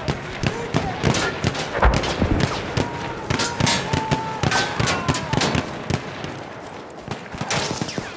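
Explosions boom nearby.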